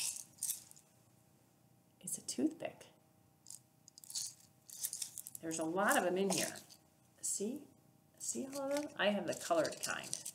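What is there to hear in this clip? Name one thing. Paper crinkles and rustles in hands.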